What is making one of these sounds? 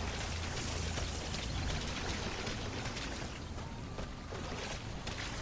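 Footsteps crunch quickly on dry gravel.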